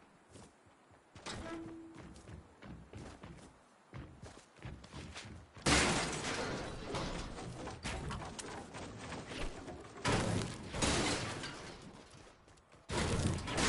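Footsteps patter quickly on a hard roof.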